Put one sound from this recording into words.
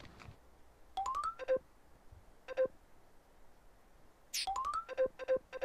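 A rising chime sounds when a game menu opens.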